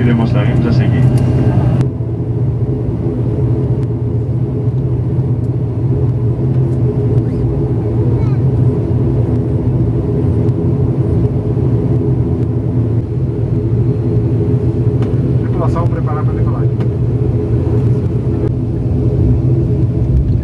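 A propeller engine drones loudly and steadily from close by.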